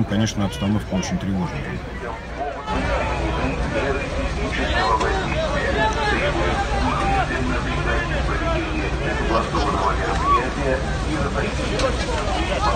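A large crowd of men and women chants and shouts loudly outdoors.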